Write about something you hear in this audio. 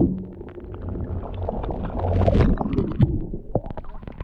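Water rumbles and gurgles close by, as if heard underwater.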